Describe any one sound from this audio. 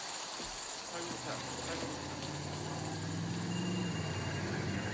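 A vehicle engine rumbles close by.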